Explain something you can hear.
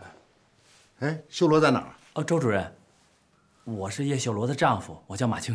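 A middle-aged man speaks calmly and politely.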